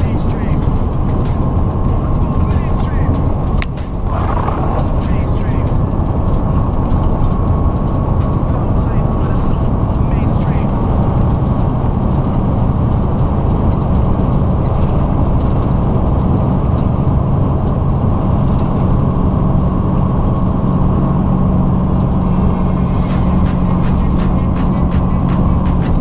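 A truck's engine drones steadily as it drives along a highway.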